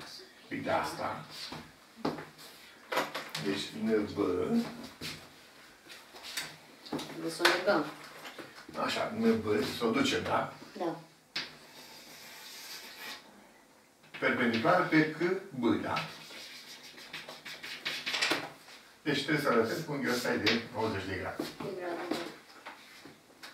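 An elderly man speaks calmly and explains, close by.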